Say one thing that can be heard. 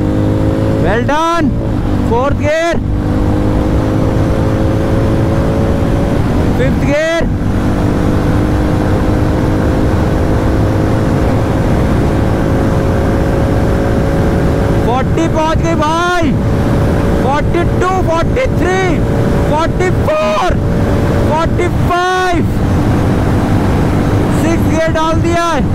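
A motorcycle engine roars steadily at high speed, with brief dips and surges in pitch.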